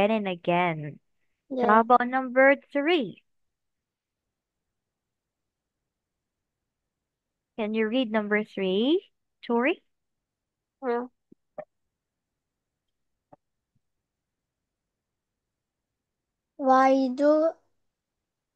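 A child speaks over an online call.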